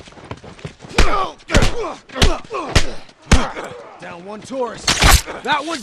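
Melee blows land on a body with heavy thuds.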